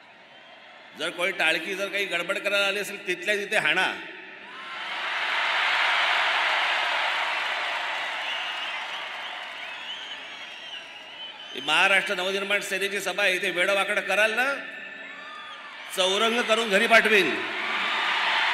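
A man speaks forcefully into a microphone over loudspeakers to a crowd.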